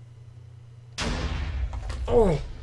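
A block explodes with a loud boom.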